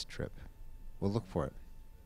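An elderly man speaks briefly nearby.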